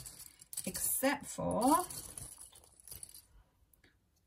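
Fabric rustles and crinkles as hands handle it.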